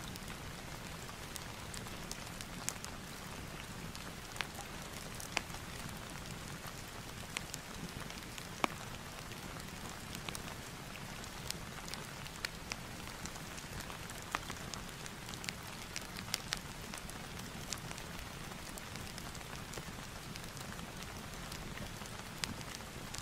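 A pen scratches and taps on paper close by.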